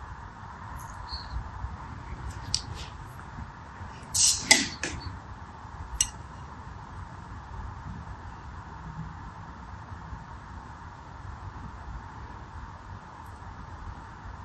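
Water beads click and squish softly as fingers stir and pick through them.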